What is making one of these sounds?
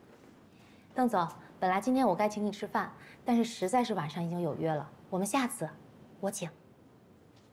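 A young woman speaks calmly and politely, close by.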